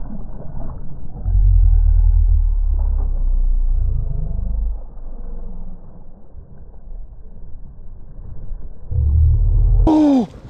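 A fish splashes and thrashes in the water close by.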